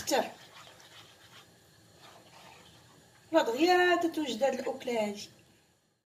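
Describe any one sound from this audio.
A spatula stirs thick sauce in a pan with soft scraping and squelching.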